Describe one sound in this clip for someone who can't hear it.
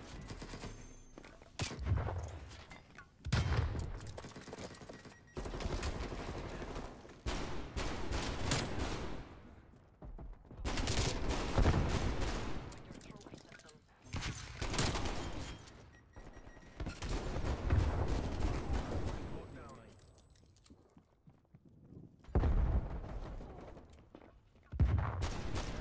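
Pistols fire in rapid bursts, close by.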